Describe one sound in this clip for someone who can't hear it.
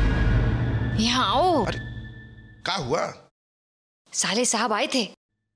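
A woman speaks in a pleading, sing-song voice close by.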